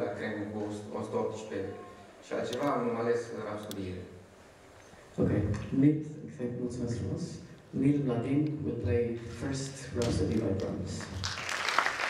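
A man speaks into a microphone over a loudspeaker in a large hall.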